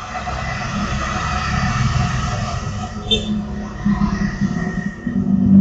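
A motorcycle engine hums as it rides past close by.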